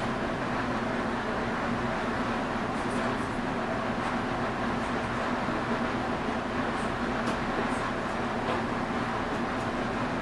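Train wheels click and clatter on the rail joints.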